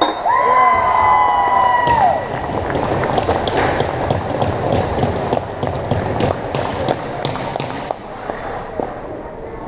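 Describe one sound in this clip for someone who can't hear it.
Hockey sticks clack against the ice and the puck.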